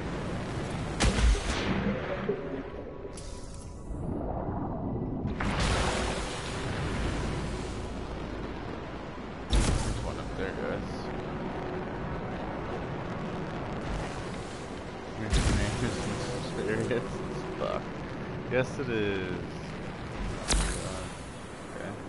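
Explosions and jet thrusters roar in sudden bursts.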